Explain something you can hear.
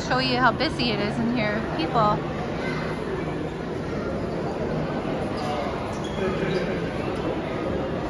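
People murmur and chatter in a large echoing hall.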